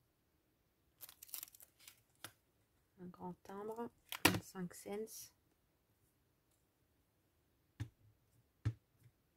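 Clear plastic stamps click and clatter softly as they are handled.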